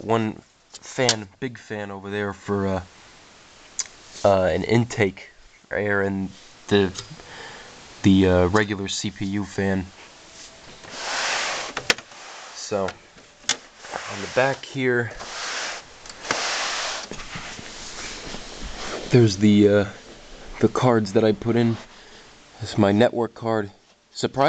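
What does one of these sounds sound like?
Fingers tap and scrape on a metal case.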